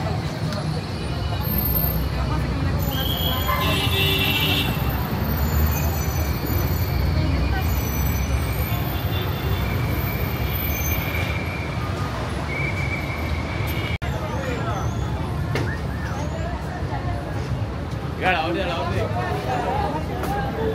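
Traffic rumbles steadily on a busy street outdoors.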